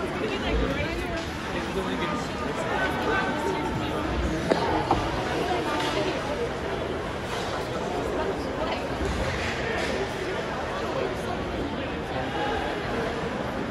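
A large crowd murmurs and chatters in an echoing arena.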